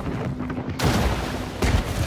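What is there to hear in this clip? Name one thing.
A large wave of water crashes and splashes.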